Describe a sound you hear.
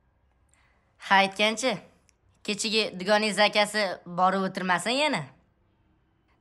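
A boy speaks calmly and cheerfully close by.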